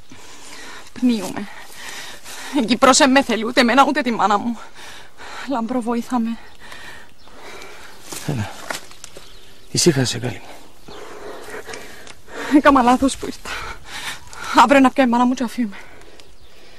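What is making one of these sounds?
A young woman speaks softly and tearfully, close by.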